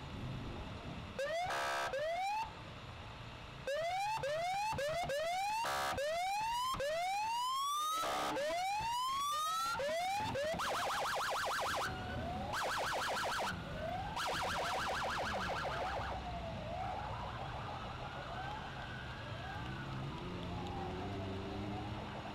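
Cars drive past on the road.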